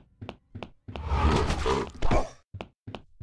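A body thuds heavily to the floor.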